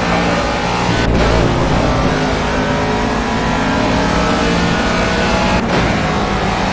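A racing car engine briefly cuts out as gears shift.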